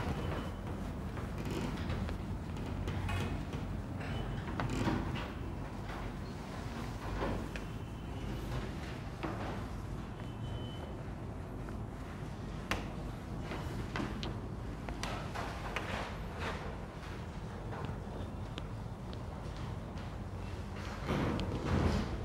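A whiteboard eraser rubs and squeaks across a board.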